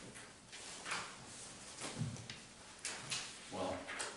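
Papers rustle and shuffle on a table.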